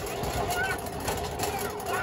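A small wagon's wheels rumble over concrete.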